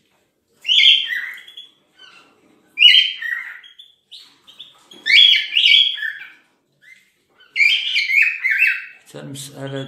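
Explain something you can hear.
Canaries chirp and sing in loud bursts close by.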